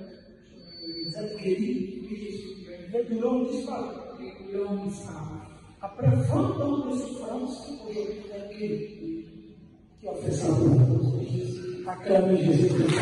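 A young woman speaks calmly into a microphone, close by.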